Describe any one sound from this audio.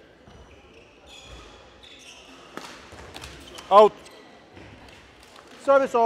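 Rackets strike a shuttlecock with light pops in an echoing hall.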